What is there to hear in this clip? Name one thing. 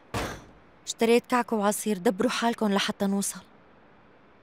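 A young woman speaks quietly close by.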